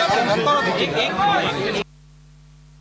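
A crowd of men and women talk and shout excitedly close by.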